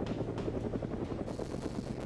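Motorcycle engines idle and rumble together.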